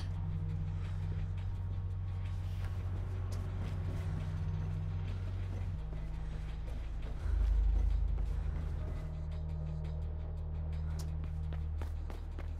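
Footsteps patter quickly on metal.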